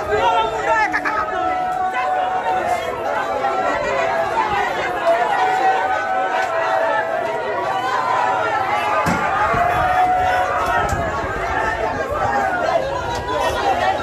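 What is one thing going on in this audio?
A crowd of men and women talks and shouts loudly all around, close by.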